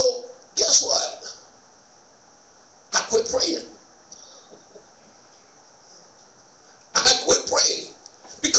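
A man speaks slowly into a microphone in short bursts, heard through a loudspeaker in an echoing room.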